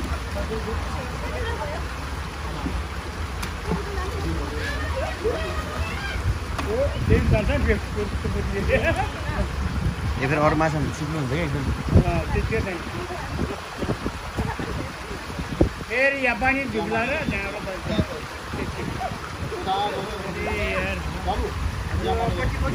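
Several men and women talk and call out nearby.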